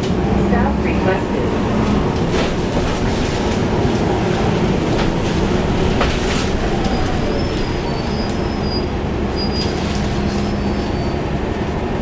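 The bus body rattles and clatters as it drives.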